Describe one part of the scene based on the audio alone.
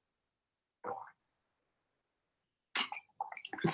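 A young woman gulps water from a bottle.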